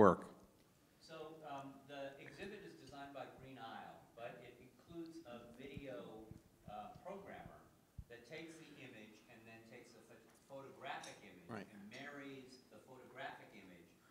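An elderly woman speaks calmly into a microphone, heard more softly.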